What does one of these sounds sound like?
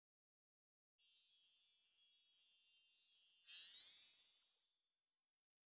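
A sparkling chime twinkles and sweeps upward.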